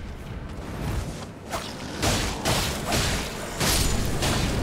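Sword blows clash and thud in a fight.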